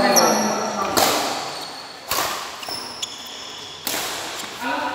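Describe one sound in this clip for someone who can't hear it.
Shuttlecocks are struck with sharp racket smacks in a large echoing hall.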